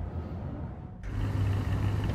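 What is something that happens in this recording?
A sports car engine idles with a deep, steady rumble.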